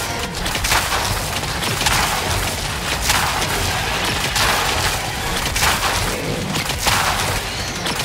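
Guns fire in bursts with loud blasts.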